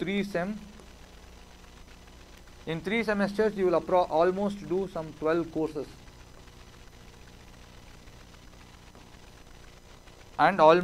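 A man lectures calmly into a close microphone, in short bursts.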